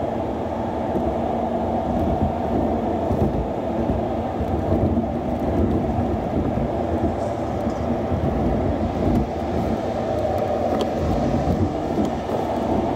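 Tyres roll on the road with a low, steady roar.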